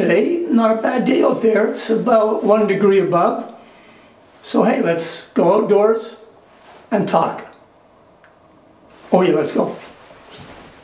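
A middle-aged man talks with animation close to a microphone, with pauses.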